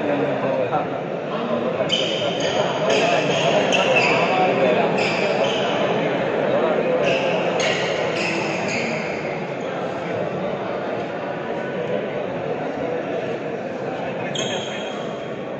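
Voices chatter throughout a large echoing hall.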